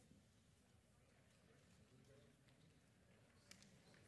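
A man's footsteps fall softly in a large hall.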